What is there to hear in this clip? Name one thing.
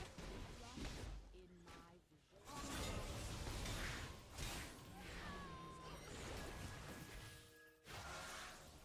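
Magic blasts and clashing hits ring out in a fast fight.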